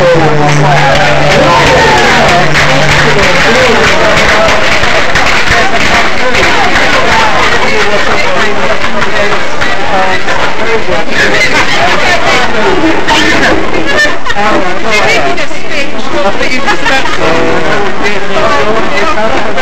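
A crowd of men and women chatter and cheer loudly in an echoing hall.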